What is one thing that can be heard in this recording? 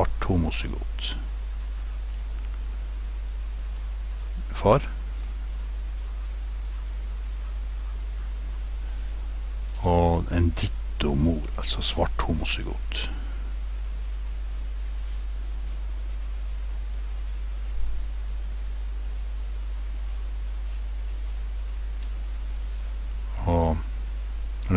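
A pencil scratches across paper as it writes.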